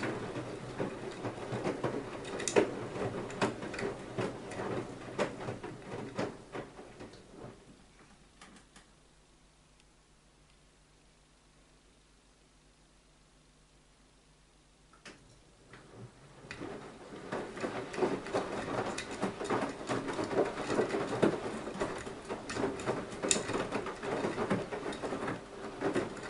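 A washing machine motor hums steadily.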